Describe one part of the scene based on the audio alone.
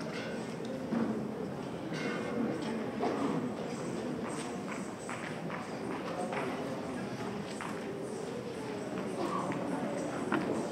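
A young man speaks calmly through a microphone in a large echoing hall.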